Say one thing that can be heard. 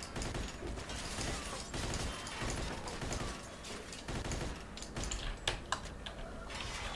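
A submachine gun fires in short bursts.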